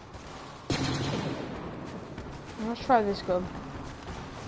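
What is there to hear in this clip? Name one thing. Laser blasters fire in sharp zaps with a booming blast.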